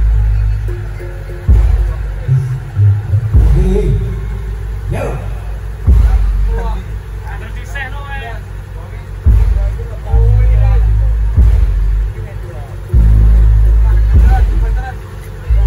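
Large drums boom loudly in heavy bursts.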